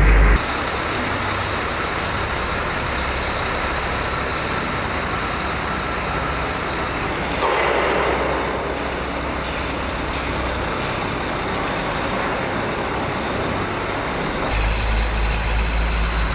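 A heavy truck engine rumbles as it drives through a large echoing hall.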